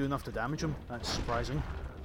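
A burst of flame roars.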